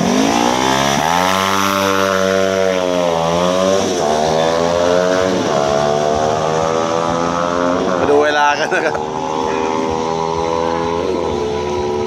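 A motorcycle accelerates hard and roars away, its engine rising through the gears.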